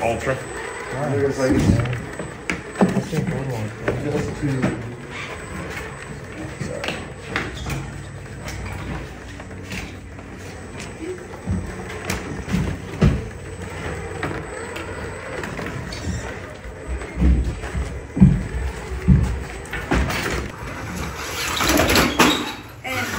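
An electric motor whirs as a toy truck crawls over rocks.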